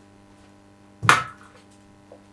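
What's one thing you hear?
A bottle knocks down onto a table.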